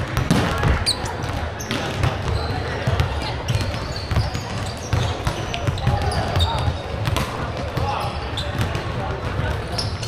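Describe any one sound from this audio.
Volleyballs thud against hands and the floor in a large echoing hall.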